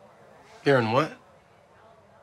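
A young man speaks briefly and calmly nearby.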